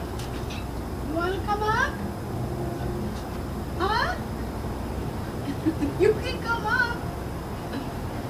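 A child squeals and calls out excitedly nearby.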